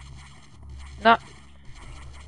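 A blaster fires short zapping shots.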